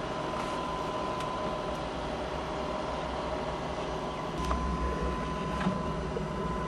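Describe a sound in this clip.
A diesel engine idles with a steady low rumble and hum.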